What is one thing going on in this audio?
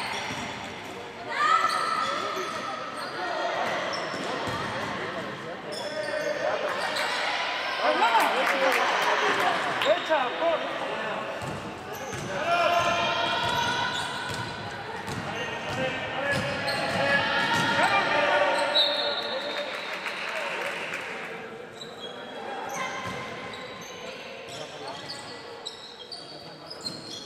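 Young women shout and call out to one another in a large echoing gym.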